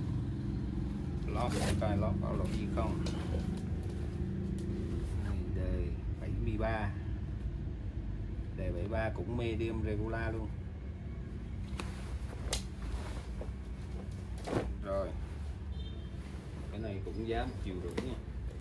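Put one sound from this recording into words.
A fabric jacket rustles and crinkles as it is handled.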